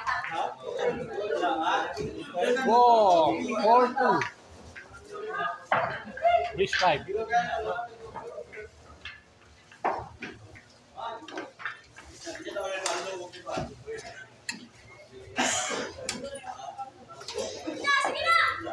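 Several men talk with animation nearby.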